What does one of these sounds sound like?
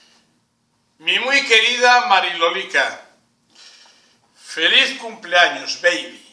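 An elderly man speaks clearly into a nearby microphone, as if giving a talk.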